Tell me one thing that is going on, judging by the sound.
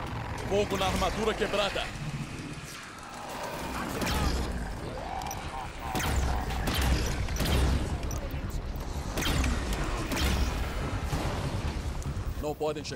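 Energy weapons fire in rapid bursts.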